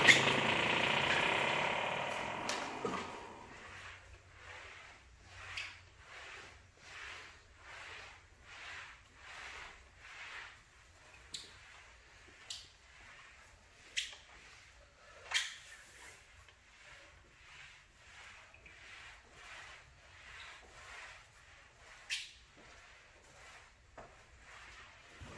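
A wet mop swishes back and forth across a hard floor in regular strokes.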